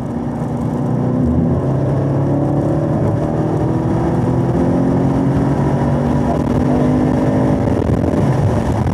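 A car engine roars loudly as it accelerates hard, rising in pitch through the gears.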